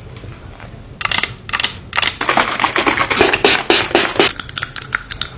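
A spray bottle hisses out bursts of mist.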